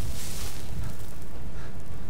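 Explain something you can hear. Footsteps clatter on a stone floor.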